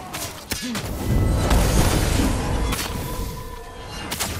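A bomb explodes with a deep boom.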